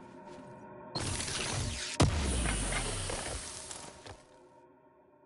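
A crate opens with a whooshing hiss.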